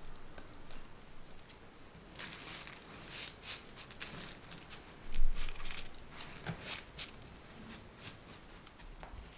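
A spatula scrapes and presses crumbs, rustling.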